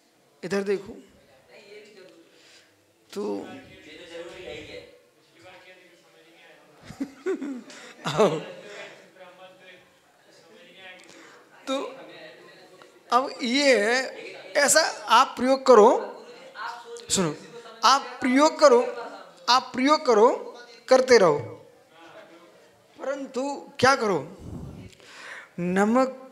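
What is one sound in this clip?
A middle-aged man speaks with animation into a close microphone, pausing often.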